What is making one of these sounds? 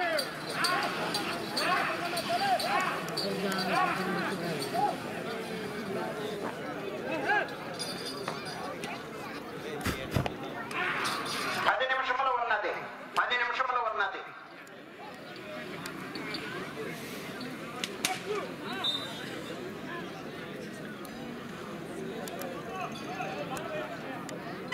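A crowd of men shout and cheer outdoors.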